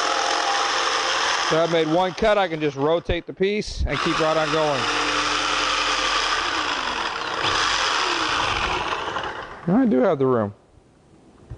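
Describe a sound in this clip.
A power drill whirs loudly through wood.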